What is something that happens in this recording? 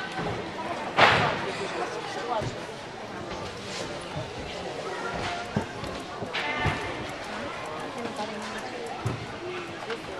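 Feet thump on a balance beam and mats.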